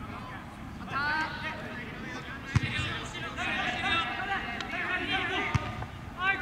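Young men shout and call out across an outdoor pitch.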